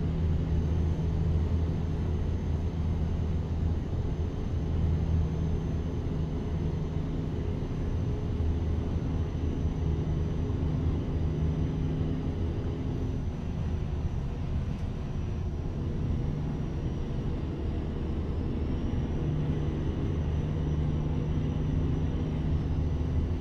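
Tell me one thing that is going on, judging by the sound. A truck's diesel engine drones steadily, with a low rumble that swells and eases.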